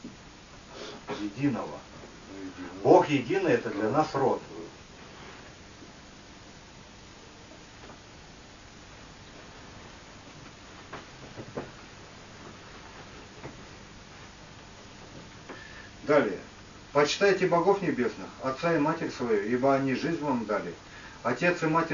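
A man reads aloud from a book in a steady, calm voice.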